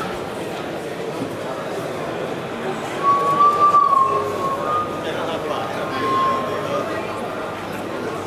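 A man talks into a handheld microphone while walking among listeners.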